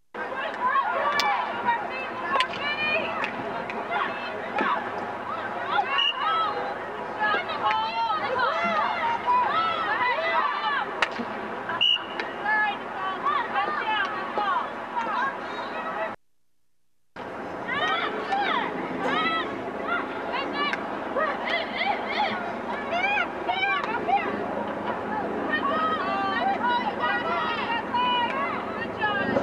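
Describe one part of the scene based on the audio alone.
Young women shout and call out to one another outdoors.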